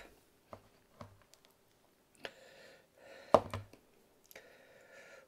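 Small plastic parts click and tap as they are handled.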